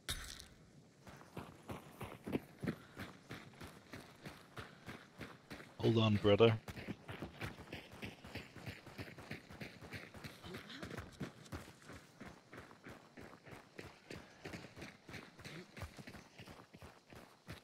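Footsteps crunch steadily over dry, stony ground.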